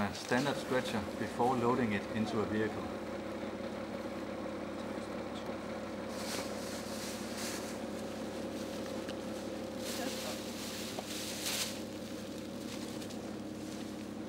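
An engine idles with a steady hum.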